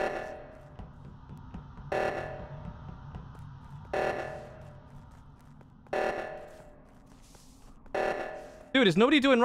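An alarm blares in short bursts every two seconds.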